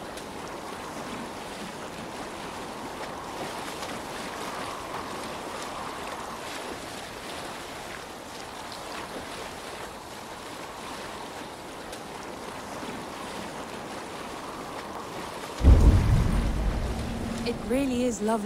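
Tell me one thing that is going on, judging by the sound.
Water splashes and laps steadily against a rowed boat.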